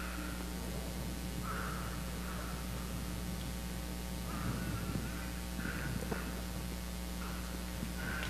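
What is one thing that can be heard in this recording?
Footsteps tread across a hard floor in a large echoing hall.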